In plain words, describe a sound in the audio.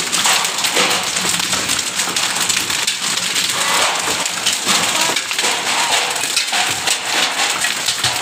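Hail clatters down hard on the ground and roofs outdoors.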